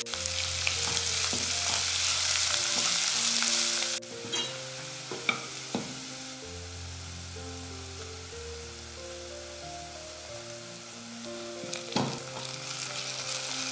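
A spatula scrapes against a pan.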